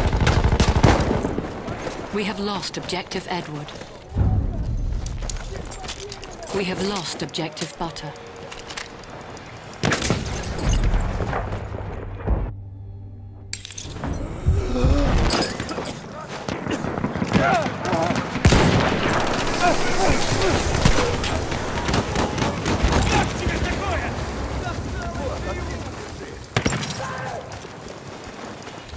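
Rapid gunshots crack and rattle close by.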